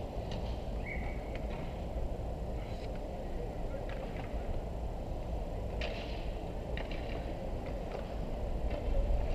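A hockey goalie's ice skates scrape on ice.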